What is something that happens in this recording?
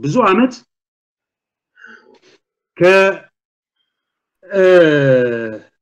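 A man speaks with animation over an online call, with pauses between phrases.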